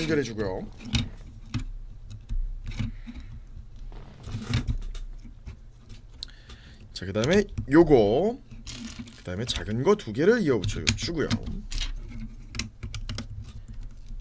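Plastic toy bricks click and clatter together.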